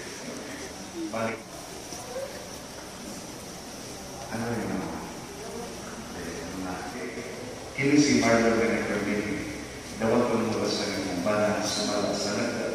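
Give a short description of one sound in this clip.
Men and women talk in low voices nearby in a large echoing hall.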